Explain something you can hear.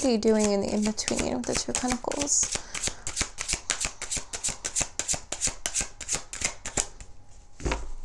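Cards riffle and flick rapidly as they are shuffled.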